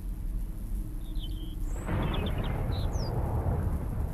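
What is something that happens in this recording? Birds chirp briefly in the distance.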